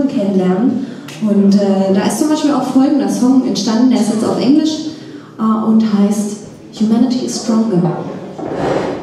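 A young woman sings into a microphone, amplified.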